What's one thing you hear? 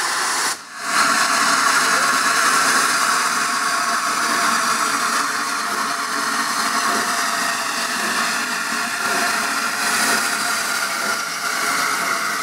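Steel wheels rumble and squeal on rails.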